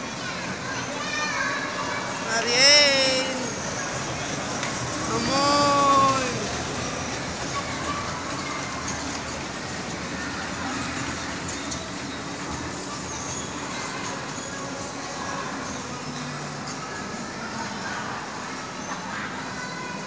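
A small ride train rumbles along its track.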